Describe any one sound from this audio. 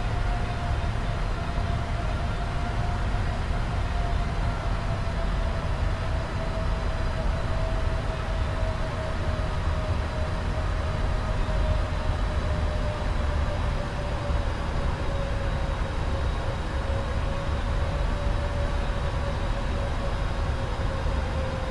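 Jet engines hum and roar steadily.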